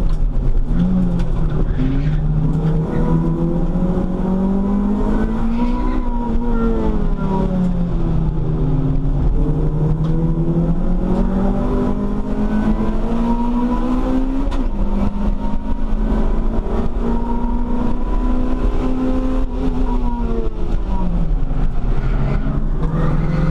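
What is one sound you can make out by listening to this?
A car engine roars loudly from inside the cabin, its pitch rising and falling.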